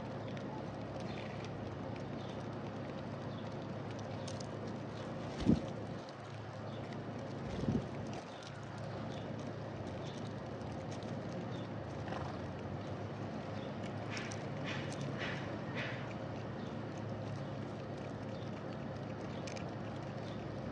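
Small birds chirp outdoors.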